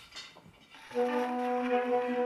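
A gramophone record starts playing music.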